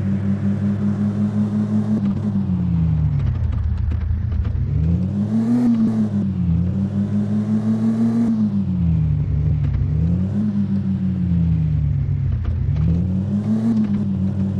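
A car engine hums steadily, rising and falling in pitch as the car speeds up and slows down.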